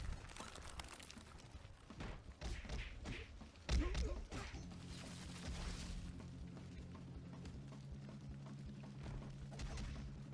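Punches and blows thud in a fast video game fight.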